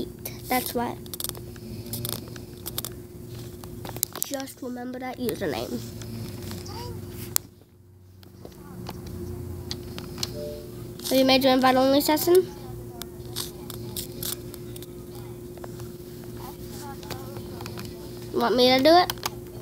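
A young child speaks and squeals loudly, close by.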